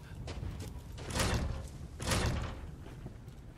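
A wooden gate is pushed open with a heavy thud.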